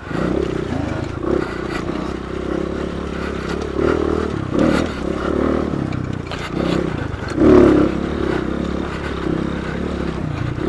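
A dirt bike engine revs and roars up close, rising and falling in bursts.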